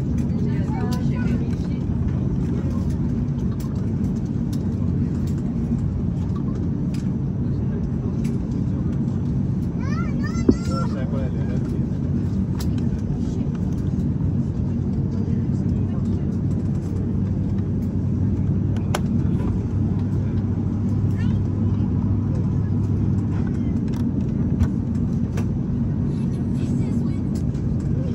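Jet engines hum with a steady low drone inside a taxiing airliner.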